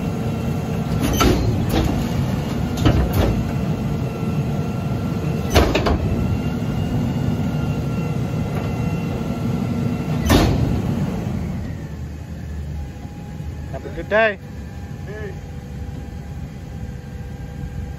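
A garbage truck's engine idles and rumbles close by.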